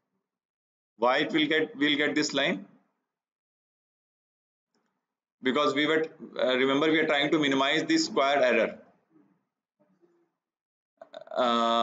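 A man speaks calmly into a close microphone, lecturing in short phrases with pauses.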